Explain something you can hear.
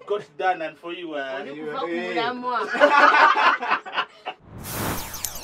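A woman talks and laughs close to a microphone.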